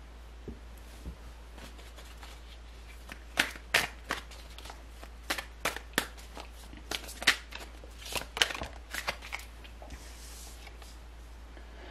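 Cards are shuffled with soft, quick flicks and clicks.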